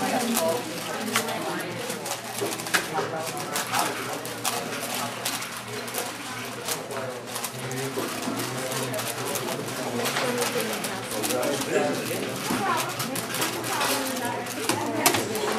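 A plastic puzzle cube clicks rapidly as it is turned.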